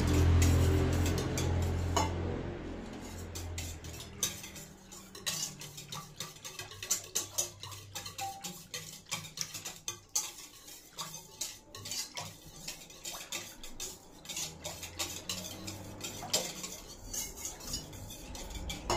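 A whisk clinks against a steel bowl, beating thick yogurt.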